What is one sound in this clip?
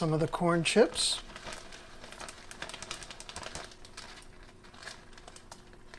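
Dry crunchy food pours from a bag and patters into a bowl.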